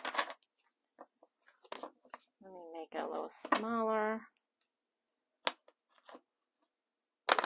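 Playing cards snap and tap as they are squared.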